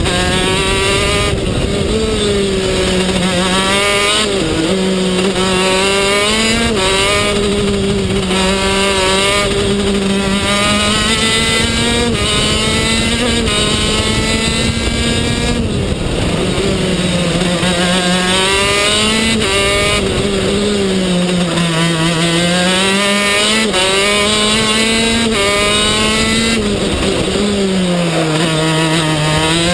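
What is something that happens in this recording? A kart engine buzzes loudly close by, its pitch rising and falling with the throttle.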